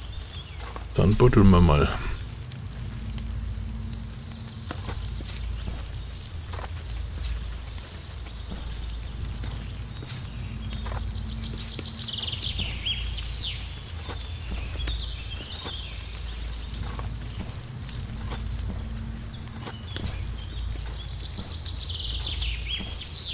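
An axe chops at a tree stump with repeated knocks.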